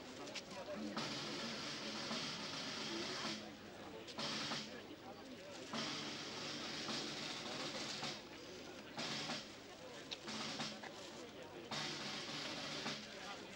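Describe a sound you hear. A large outdoor crowd murmurs quietly in the background.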